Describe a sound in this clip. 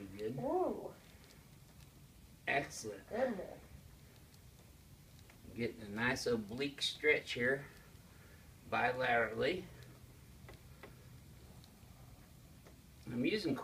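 A middle-aged man speaks calmly nearby in short phrases.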